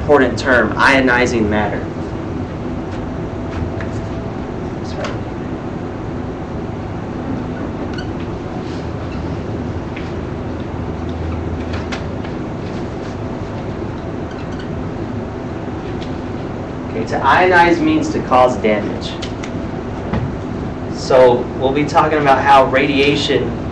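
A man speaks clearly and calmly to a room, in a slightly echoing space.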